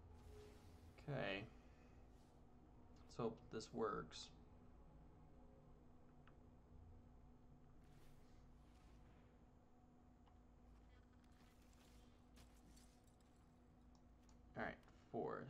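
A man speaks in short bursts into a headset microphone, close by.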